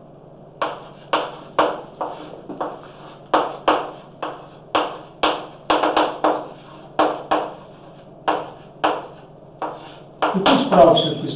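Chalk taps and scrapes sharply on a blackboard in an echoing room.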